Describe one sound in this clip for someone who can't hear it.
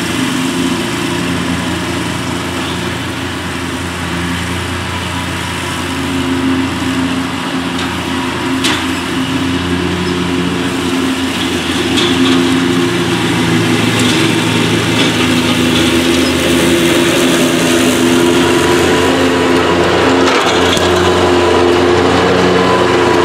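A zero-turn mower engine drones while cutting thick tall grass and approaches.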